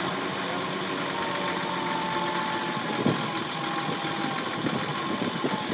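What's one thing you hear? A diesel engine rumbles steadily at idle close by.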